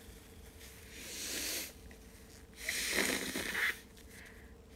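A young woman blows her nose into a tissue.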